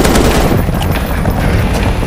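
A rifle magazine clicks out during a reload.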